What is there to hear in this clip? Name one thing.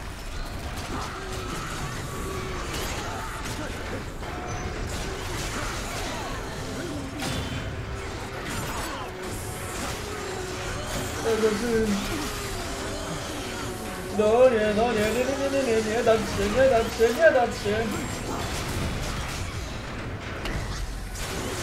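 Blades clash and slash in a fight.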